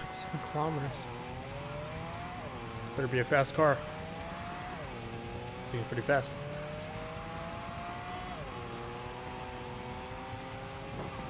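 A car engine revs up steadily, dropping in pitch with each gear change.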